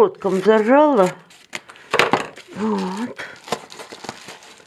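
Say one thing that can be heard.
A paper envelope rustles and crinkles as it is torn open.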